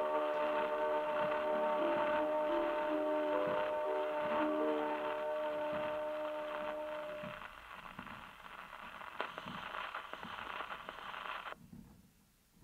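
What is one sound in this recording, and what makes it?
An old gramophone plays a crackly record of music.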